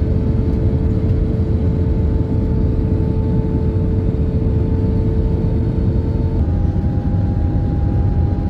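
Jet engines roar steadily with a low rumble and a droning hum.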